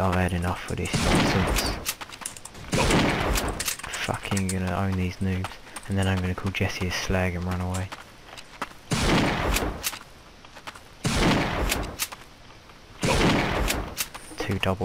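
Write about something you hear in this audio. A sniper rifle fires loud single shots that echo.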